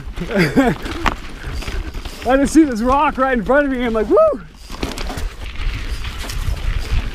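Bicycle tyres crunch and rattle over a rocky trail.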